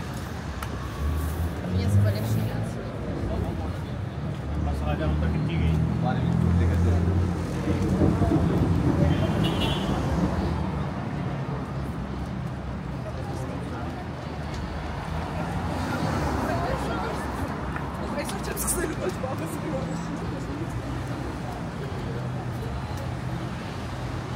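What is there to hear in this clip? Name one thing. Cars drive past on the street.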